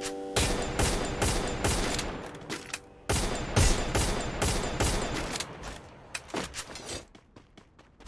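Gunshots fire in rapid bursts and echo.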